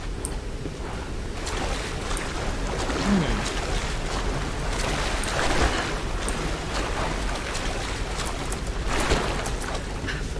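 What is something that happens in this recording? Water splashes as someone wades through a stream.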